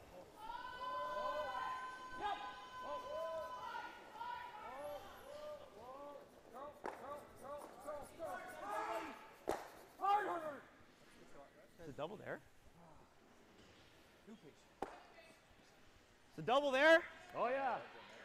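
Men shout loudly across an echoing rink.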